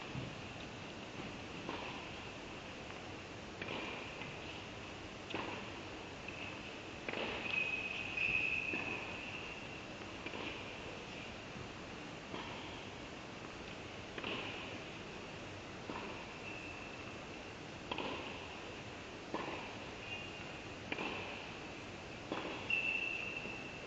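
Sneakers squeak on a hard indoor court in an echoing hall.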